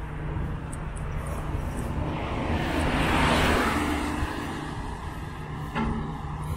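A small truck drives past close by.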